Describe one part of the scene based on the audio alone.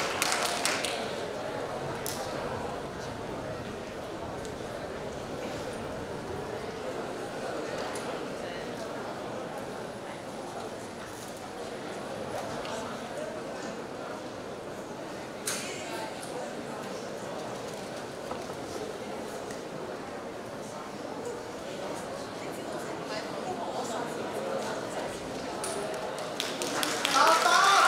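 A crowd murmurs and chatters quietly in a large hall.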